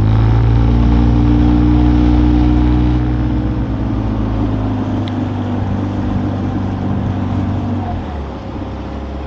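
Water splashes and laps against the hull of a moving boat.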